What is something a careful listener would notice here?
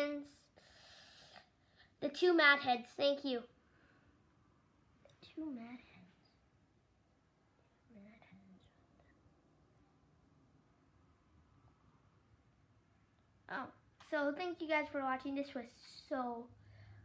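A young boy talks close by, in short bursts with pauses.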